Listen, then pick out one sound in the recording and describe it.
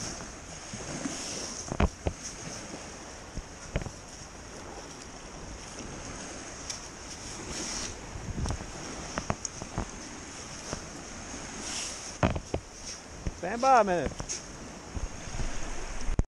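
A metal scoop digs and scrapes through wet sand.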